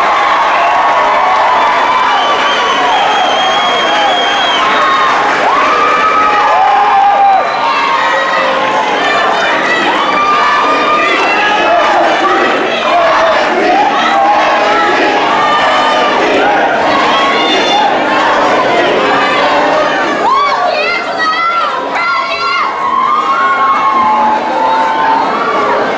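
A crowd of young people chatter all around.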